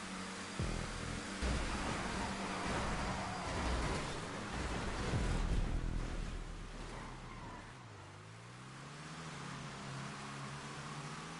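Race car engines roar loudly at high speed.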